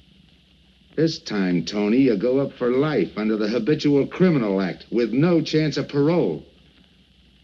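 A man speaks in a steady voice, close by.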